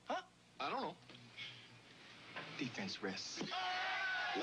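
A crowd of men chatters and laughs.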